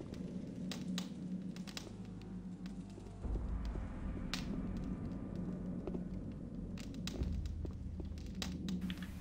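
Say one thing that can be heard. Footsteps thud on a stone floor.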